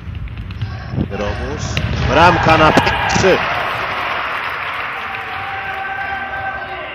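A crowd cheers loudly in an echoing hall.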